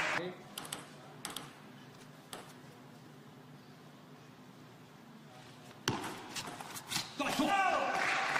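A table tennis ball clicks sharply off bats and the table.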